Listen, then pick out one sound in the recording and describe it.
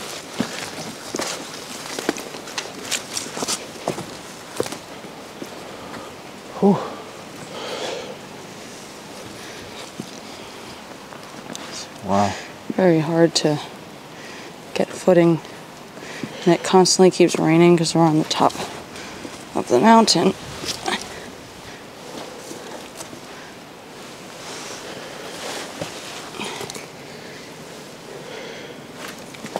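Footsteps crunch over rocks and leaves.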